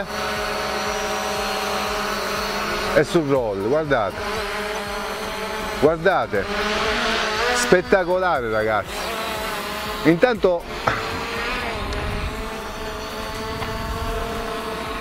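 A drone's propellers whine steadily close by, rising and falling in pitch as it moves.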